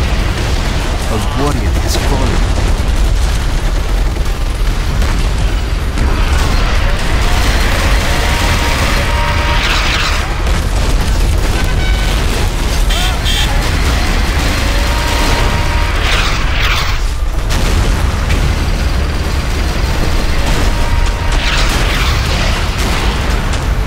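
Explosions boom and rumble again and again.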